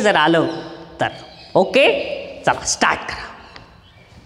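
A young man speaks with animation into a clip-on microphone in a slightly echoing room.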